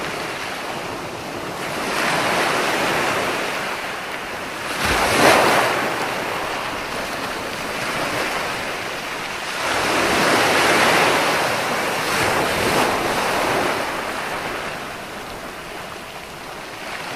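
Ocean waves break and wash up onto the shore in rolling surges.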